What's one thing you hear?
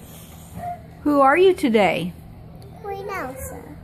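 A young girl speaks up close in a high, singsong voice.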